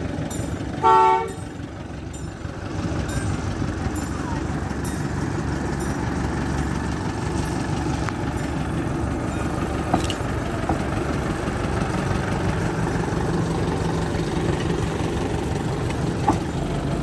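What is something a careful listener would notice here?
A small diesel locomotive's engine rumbles steadily as it rolls closer.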